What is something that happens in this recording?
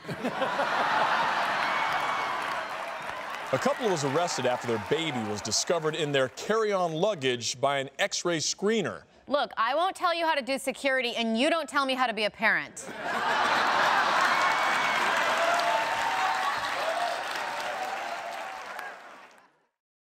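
A studio audience laughs and applauds loudly.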